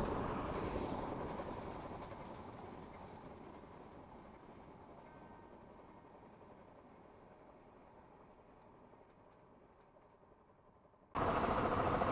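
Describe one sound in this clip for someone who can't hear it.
A train rumbles past and fades into the distance.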